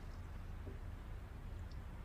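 A young woman sips water from a glass.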